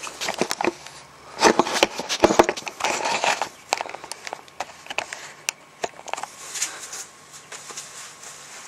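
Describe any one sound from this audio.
A man talks casually, close by.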